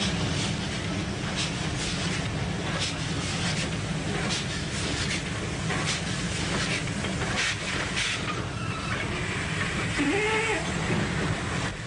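A steam locomotive chugs and puffs as it pulls in.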